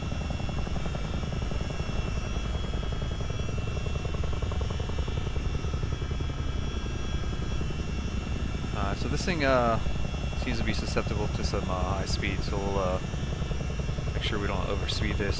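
A propeller aircraft's engines drone steadily with a low rumble.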